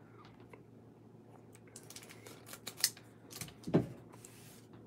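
Scissors snip through a foil wrapper.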